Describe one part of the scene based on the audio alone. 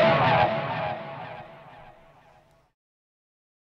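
An electric guitar chord rings out and slowly fades.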